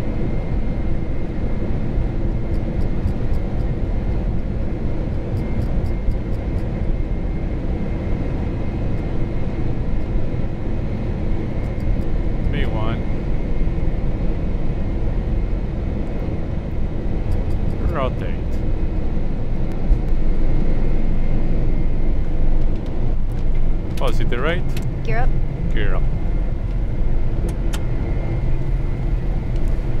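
A plane's wheels rumble over a runway.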